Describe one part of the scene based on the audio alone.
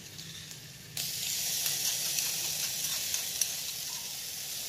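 Chopped garlic and chilli sizzle loudly in a hot pan.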